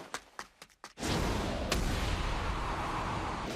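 A fist hits a face with a heavy thud.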